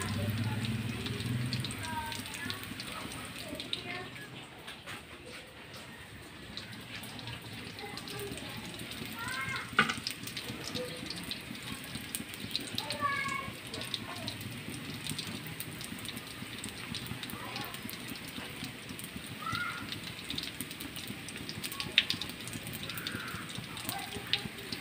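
Food sizzles and crackles softly in a hot pan.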